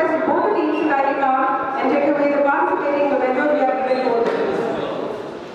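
A man speaks into a microphone over loudspeakers in an echoing hall.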